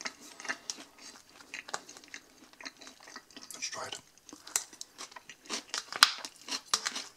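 A fork scrapes and clinks against a plastic bowl of salad.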